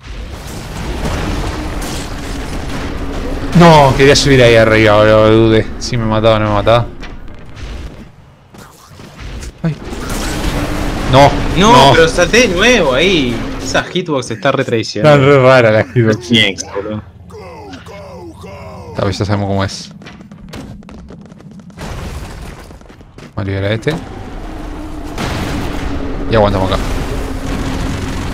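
Explosions and gunfire pop from a video game.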